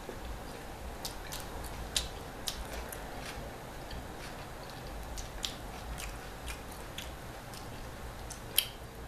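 Crisp pizza crust crackles as it is broken apart by hand.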